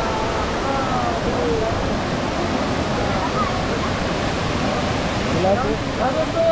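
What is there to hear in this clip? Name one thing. Women talk nearby.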